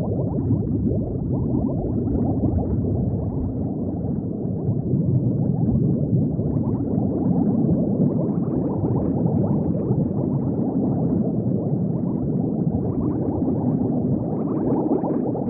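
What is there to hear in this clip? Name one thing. Bubbles gurgle and burble steadily underwater.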